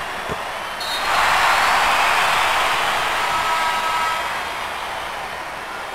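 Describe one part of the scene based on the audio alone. A crowd roars loudly and then fades.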